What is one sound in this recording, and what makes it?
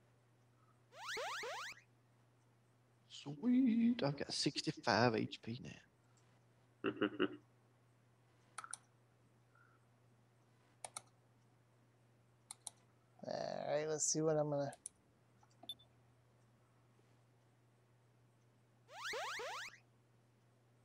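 A short, bright, shimmering video game chime plays twice.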